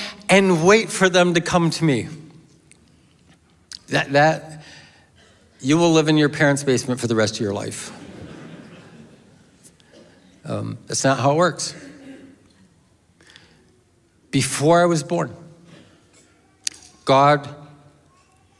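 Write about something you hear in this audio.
A middle-aged man speaks with feeling into a microphone, in a room with a slight echo.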